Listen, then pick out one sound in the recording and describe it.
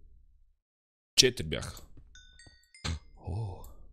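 A stone block breaks with a crunch.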